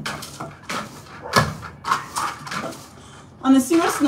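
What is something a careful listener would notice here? A broom sweeps the floor with brisk scratchy strokes.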